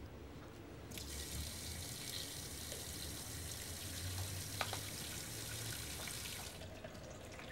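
Water pours from a tap into a metal sink.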